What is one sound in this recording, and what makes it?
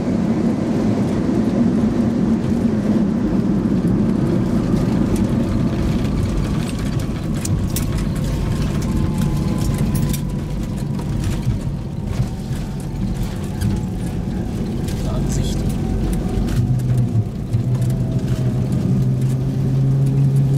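Wheels rumble and thump over the runway.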